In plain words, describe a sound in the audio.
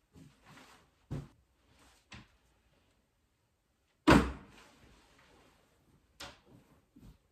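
Window shutters knock and rattle as they are moved.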